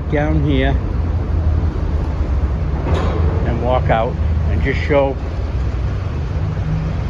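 Car engines rumble low and steadily in an echoing tunnel.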